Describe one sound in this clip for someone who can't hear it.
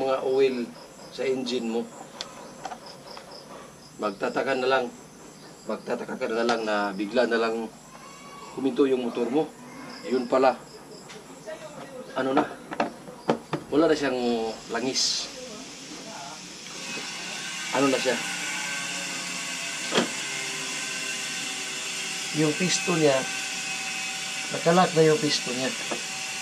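A man talks calmly and closely.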